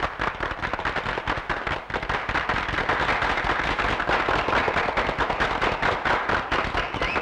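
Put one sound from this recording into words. A crowd of women and children cheers and shouts excitedly.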